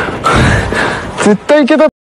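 A young man speaks cheerfully close by.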